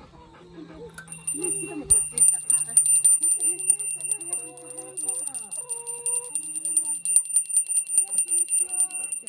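A small bell jingles rapidly and steadily close by.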